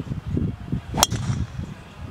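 A golf club hits a ball with a sharp crack.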